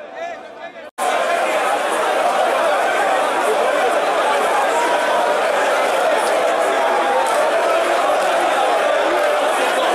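Many people cheer loudly in a large crowd.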